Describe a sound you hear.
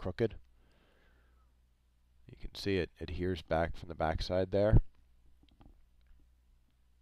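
Small plastic parts click and tap softly.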